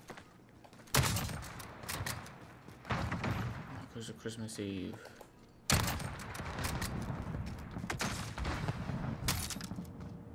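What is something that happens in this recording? Sniper rifle shots crack loudly.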